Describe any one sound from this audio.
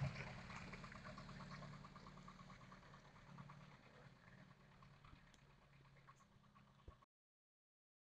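A car engine rumbles as the car drives slowly away, fading into the distance.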